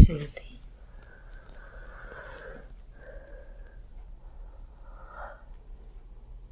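A young woman breathes heavily in her sleep.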